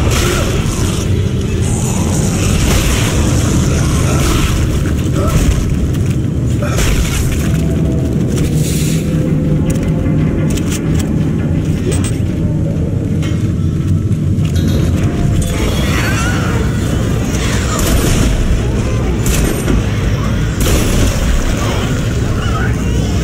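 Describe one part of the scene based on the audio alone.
A low, steady rumble hums throughout.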